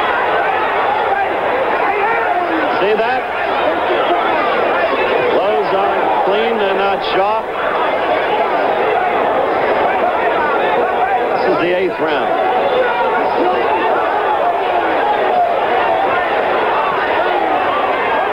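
A large crowd cheers and shouts loudly throughout.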